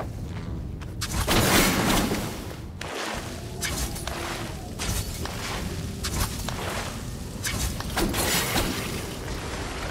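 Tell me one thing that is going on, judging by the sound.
A blade swishes through the air in sharp slashes.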